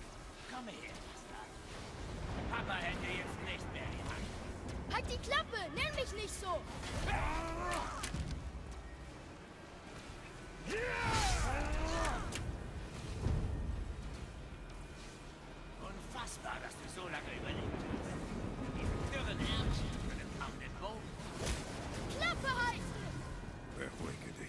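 Thunder rumbles.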